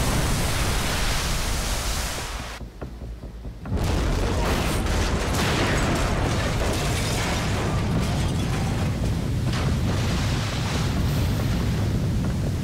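Water crashes and sprays down heavily.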